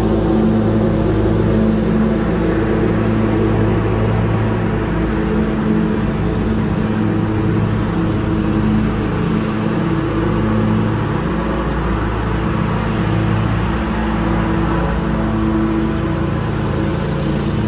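A lawn mower engine drones steadily nearby.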